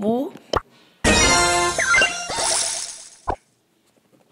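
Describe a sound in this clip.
A bright, rising game jingle plays with a sparkling chime.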